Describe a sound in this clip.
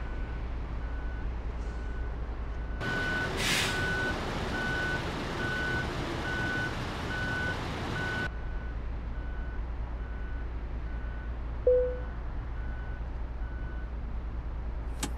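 A truck's reversing alarm beeps at an even pace.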